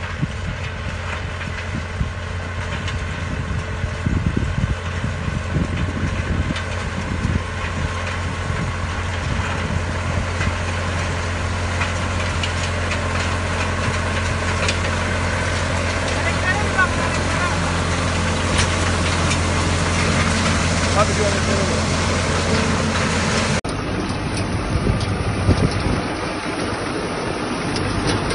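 A threshing machine clatters and whirs as it takes in dry straw.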